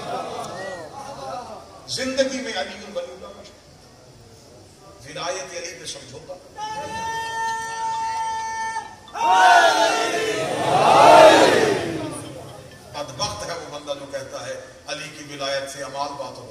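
A young man speaks with animation into a microphone, heard through a loudspeaker.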